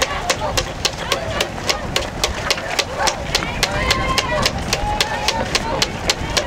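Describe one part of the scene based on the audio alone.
Running shoes slap steadily on pavement close by.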